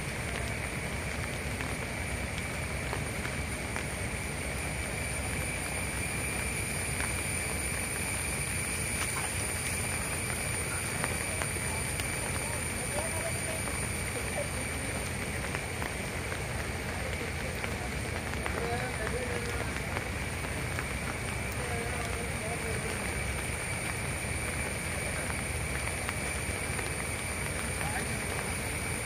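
A swollen river rushes and roars steadily.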